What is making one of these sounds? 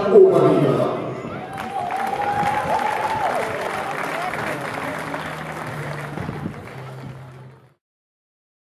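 A group of young men cheer and chatter outdoors.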